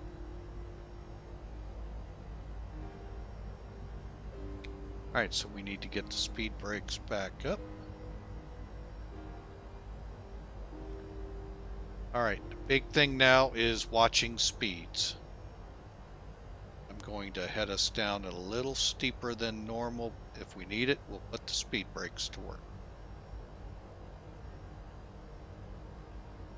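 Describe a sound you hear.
A jet engine hums steadily.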